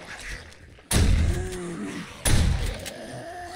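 A shotgun fires loud, booming shots.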